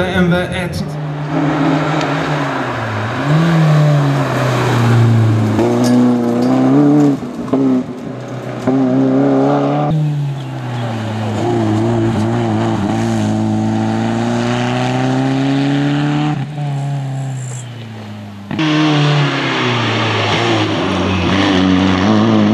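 A rally car engine roars and revs as the car speeds past.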